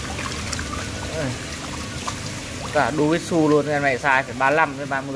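Many fish splash and thrash in shallow water close by.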